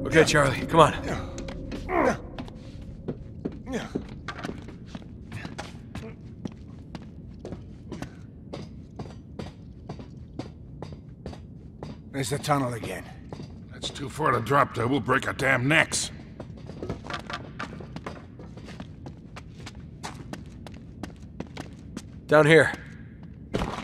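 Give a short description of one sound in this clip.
Footsteps tread on a hard floor at a steady walking pace.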